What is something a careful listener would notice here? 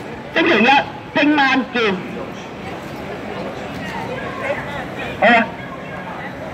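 A group of people chant slogans loudly in unison outdoors.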